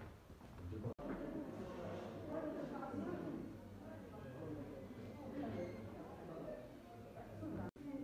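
Footsteps tap on a hard floor in an echoing hall.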